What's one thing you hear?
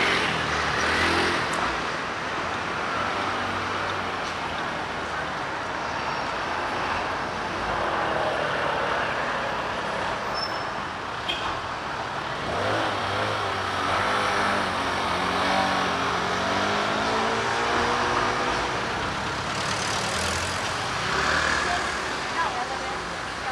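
A motor scooter drives past close by.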